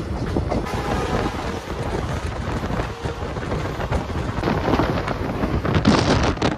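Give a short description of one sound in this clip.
A passing freight train clatters by close alongside.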